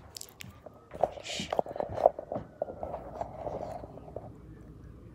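A young person whispers close to the microphone.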